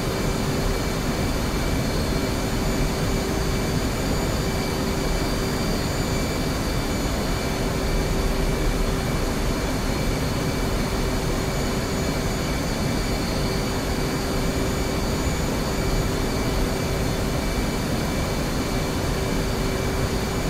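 A jet engine roars steadily from inside the cockpit.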